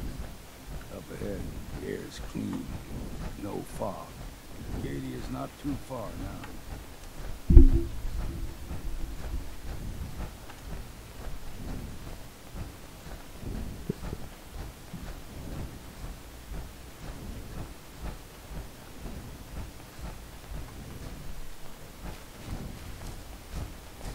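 Heavy footsteps thud steadily on the ground.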